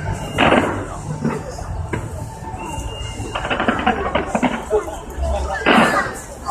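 Fireworks bang and crackle in the distance outdoors.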